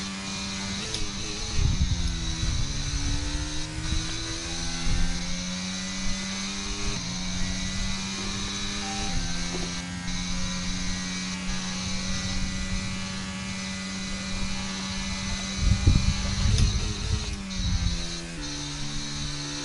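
A racing car engine drops in pitch through quick downshifts while braking.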